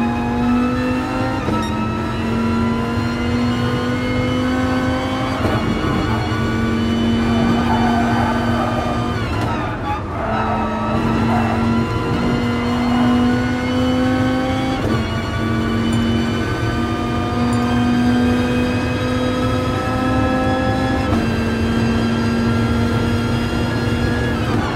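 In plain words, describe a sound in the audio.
A racing car engine roars loudly, rising in pitch through each gear and dropping sharply with each gear change.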